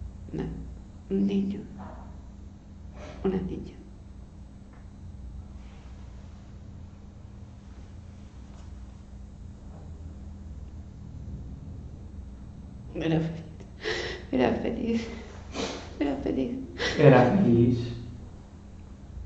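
An elderly man speaks calmly nearby, in short bursts.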